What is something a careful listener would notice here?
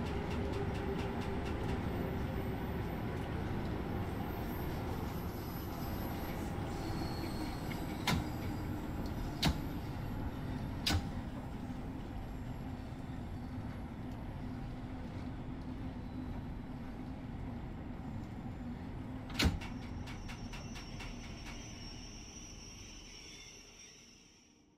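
A train rumbles steadily along the rails and slowly fades as it brakes.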